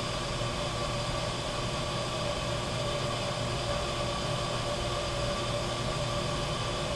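Compressed air hisses steadily from an air nozzle.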